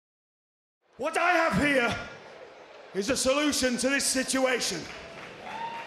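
An older man speaks loudly and with emphasis into a microphone, heard through loudspeakers.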